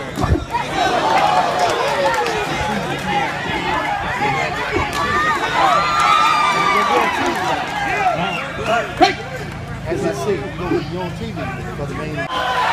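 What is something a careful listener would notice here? A crowd shouts and cheers outdoors throughout.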